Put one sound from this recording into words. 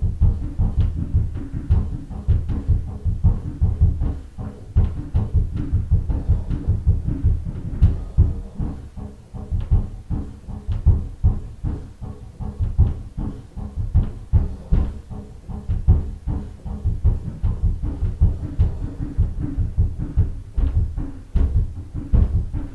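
A snare drum is struck with sticks in a quick, steady rhythm, with a booming low thump.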